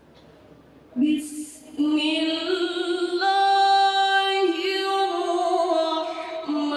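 A young woman chants melodiously into a microphone, loud and amplified.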